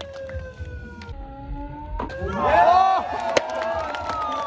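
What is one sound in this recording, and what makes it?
A skateboard snaps and clatters as a trick lands.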